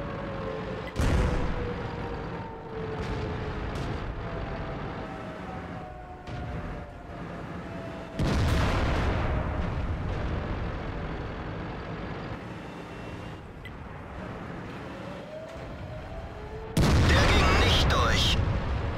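A tank cannon fires with a loud, echoing boom.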